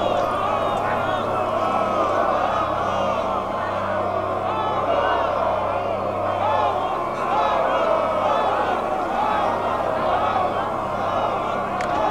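A large crowd of men cheers and shouts excitedly.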